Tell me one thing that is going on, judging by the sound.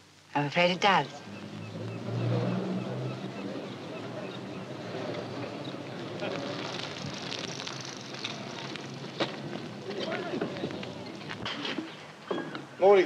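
A bicycle rolls along outdoors.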